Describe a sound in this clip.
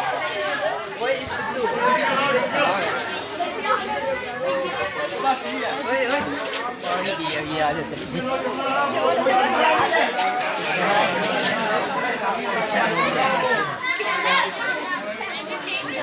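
A crowd of boys and men talks and calls out at once outdoors.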